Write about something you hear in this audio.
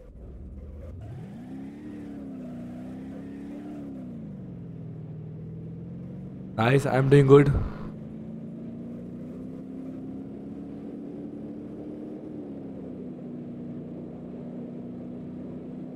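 A racing car engine revs up and hums steadily at speed.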